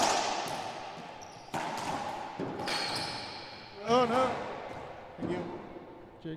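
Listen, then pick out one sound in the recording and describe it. A rubber ball smacks sharply against walls, echoing around a hard, bare court.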